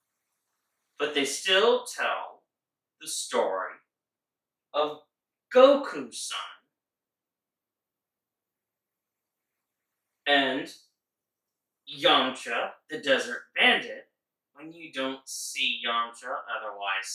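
A man speaks with animation in short bursts, close by.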